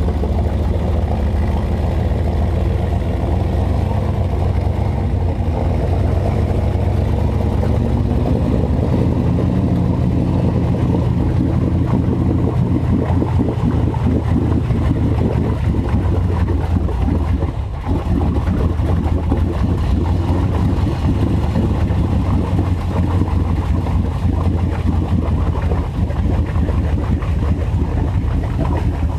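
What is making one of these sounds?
Tyres churn and splash through deep mud and water.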